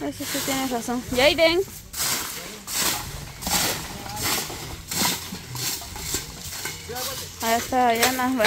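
A broom sweeps and scrapes across dry ground.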